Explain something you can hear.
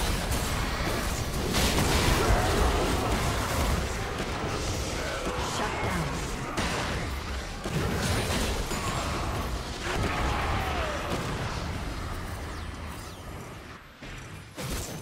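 Spell blasts, hits and clashes of a video game battle crackle and boom.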